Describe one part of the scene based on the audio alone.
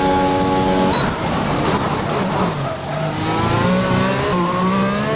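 A racing car engine screams and climbs in pitch through the gears as it speeds away.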